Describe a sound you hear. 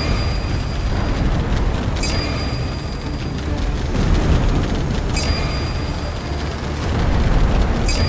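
Rapid gunfire from a game's aircraft rattles on steadily.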